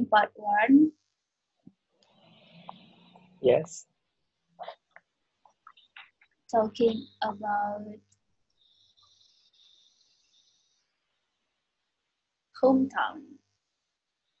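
A young woman talks in short bursts into a headset microphone, heard close and slightly muffled.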